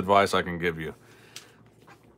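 A foil wrapper crinkles under a hand.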